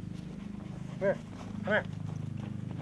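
A dog barks sharply nearby.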